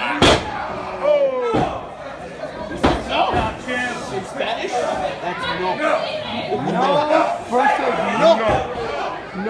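A small crowd of spectators chatters and calls out.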